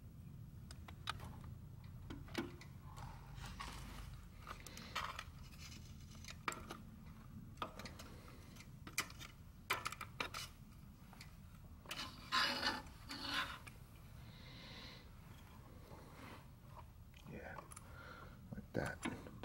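Plastic and metal engine parts click and rattle as they are handled.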